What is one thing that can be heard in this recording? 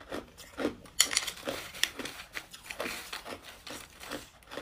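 A metal spoon scrapes through ice cubes in a bowl.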